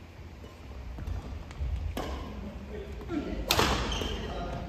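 Shuttlecocks are hit with rackets in a large echoing hall.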